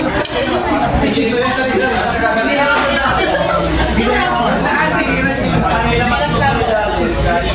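A young woman sings into a microphone, heard through a loudspeaker.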